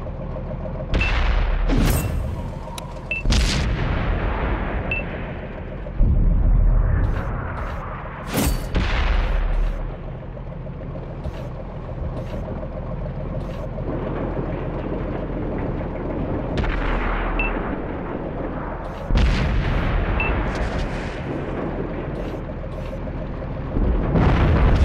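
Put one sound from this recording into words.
A tank cannon fires with loud, echoing booms.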